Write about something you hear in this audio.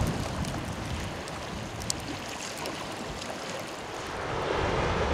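Glowing embers crackle and pop softly.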